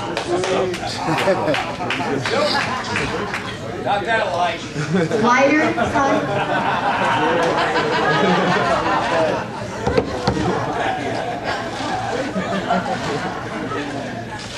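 A middle-aged woman speaks cheerfully into a microphone, heard through loudspeakers in a room.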